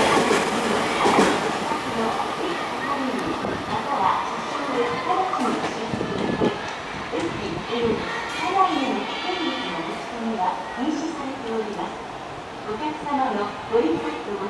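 A train rumbles and clatters along the tracks at a distance.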